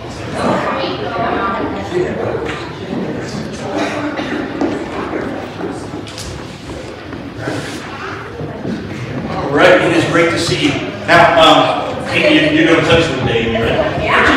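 Young children chatter and call out in an echoing hall.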